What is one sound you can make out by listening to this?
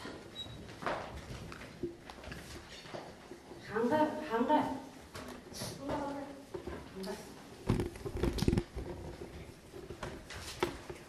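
Children chatter quietly in the background.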